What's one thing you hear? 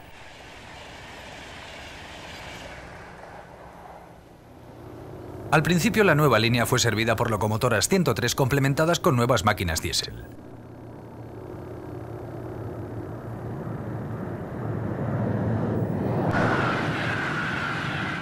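A train rushes past close by with a rising roar.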